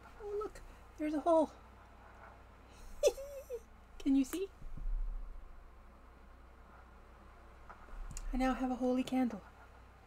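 A woman speaks with animation into a webcam microphone.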